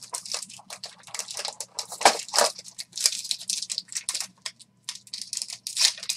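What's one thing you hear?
A foil wrapper crinkles and rustles up close.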